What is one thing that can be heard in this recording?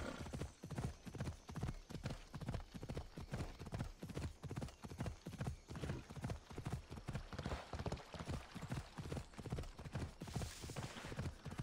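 Hooves thud in a steady gallop over the ground.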